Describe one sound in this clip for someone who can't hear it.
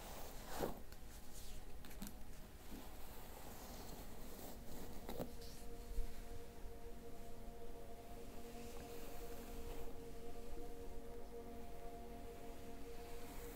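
A brush swishes through hair in soft strokes.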